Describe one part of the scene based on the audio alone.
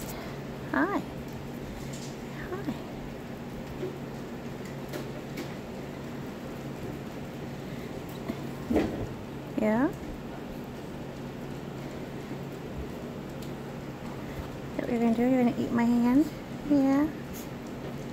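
A tiny puppy squeaks and whimpers close by.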